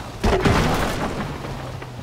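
A car smashes through a wooden fence with a loud crack.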